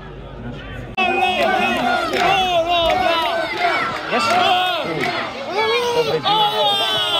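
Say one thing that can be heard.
Spectators close by shout and cheer.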